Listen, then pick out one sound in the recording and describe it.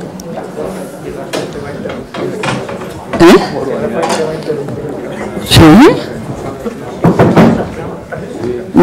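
A woman speaks over a loudspeaker in a large echoing hall.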